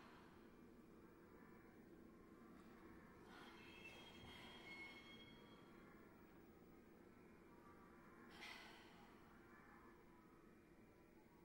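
A small ensemble plays soft, sustained notes in a large concert hall.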